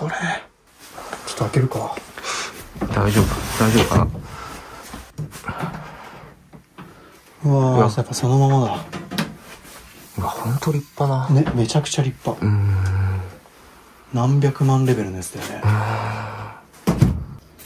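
A man speaks quietly close by, with wonder in his voice.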